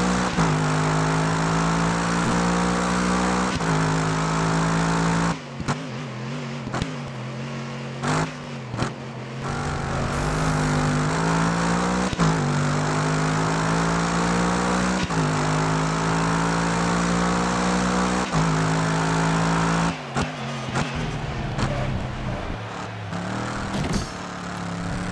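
A racing car engine roars loudly, revving up through the gears and dropping as it brakes for corners.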